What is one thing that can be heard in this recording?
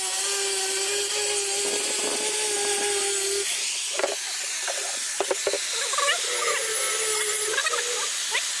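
An angle grinder whines steadily as it grinds metal.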